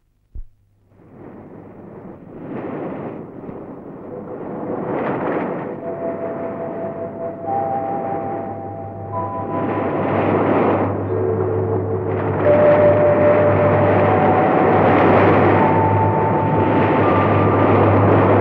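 Sea waves crash and wash onto a beach.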